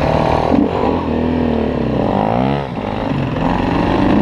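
A second dirt bike engine revs nearby and pulls away.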